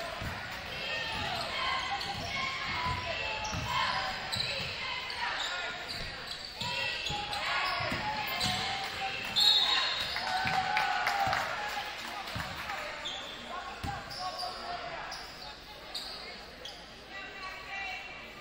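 Sneakers squeak sharply on the hardwood court.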